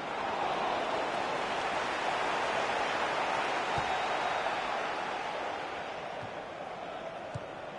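A stadium crowd roars steadily, easing slightly toward the end.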